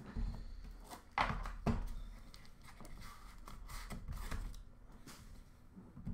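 Small cardboard boxes tap and scrape as they are handled on a tabletop.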